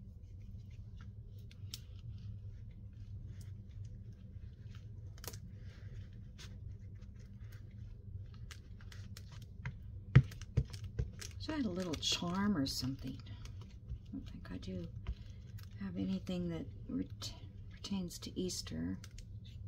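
An ink pad dabs and taps softly against card.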